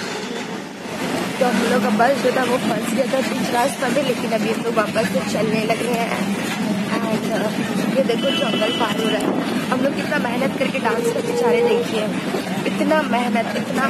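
A young woman talks close up with animation.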